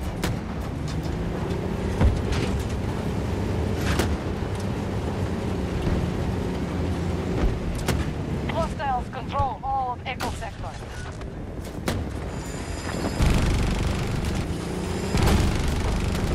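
Gunfire cracks in sharp bursts.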